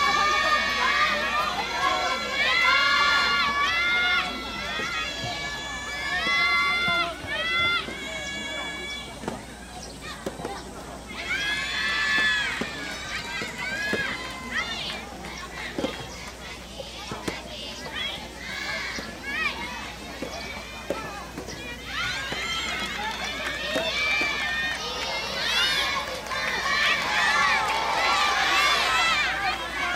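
Young women shout and cheer in high voices outdoors.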